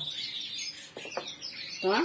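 A ceramic cup is set down on a table with a light knock.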